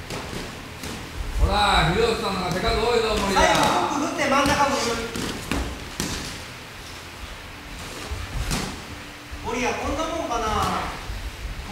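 Feet shuffle and thud on a canvas floor.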